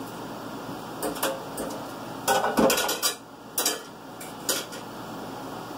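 Dishes clatter in a sink.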